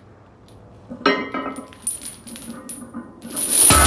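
Metal chains rattle and clink as a barbell is lifted.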